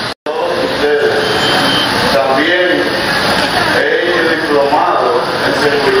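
A man speaks steadily into a microphone, heard through a loudspeaker.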